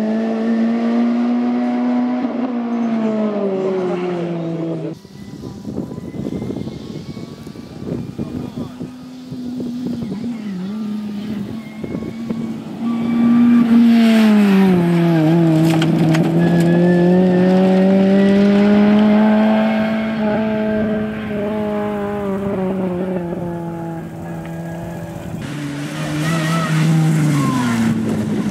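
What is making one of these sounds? A rally car engine roars and revs up and down as the car speeds past.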